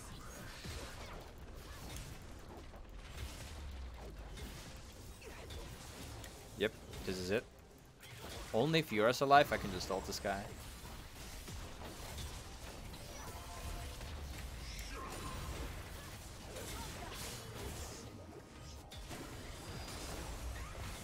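Game spells and weapons clash and crackle in a busy fight.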